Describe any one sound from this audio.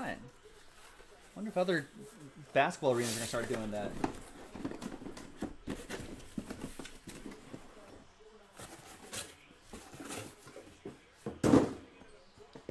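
Cardboard scrapes and rustles as a box is opened.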